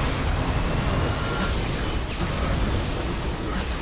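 Fiery explosions roar and boom.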